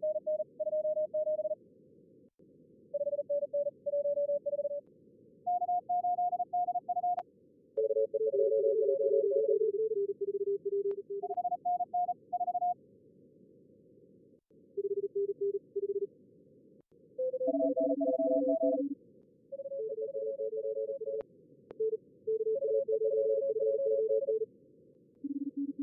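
Radio static hisses steadily.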